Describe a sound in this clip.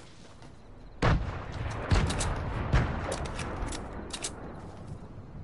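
Footsteps thud loudly on wooden steps.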